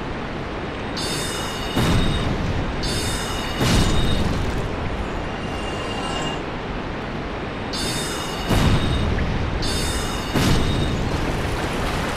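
A magic spell charges with a shimmering chime.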